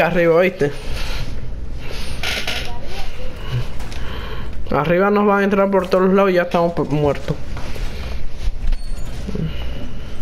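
Metal panels clank and scrape as a wall is reinforced.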